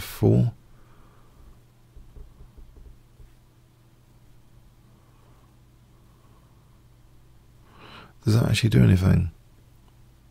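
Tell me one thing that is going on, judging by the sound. A middle-aged man speaks briefly into a close microphone, in short bursts.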